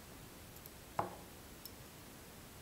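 Fingers briefly knock against a small metal clamp.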